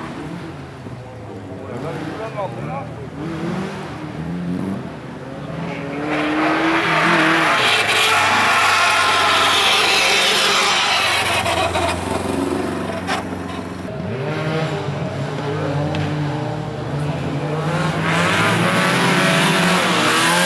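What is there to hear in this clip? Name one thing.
Rally car engines roar and rev hard nearby, outdoors.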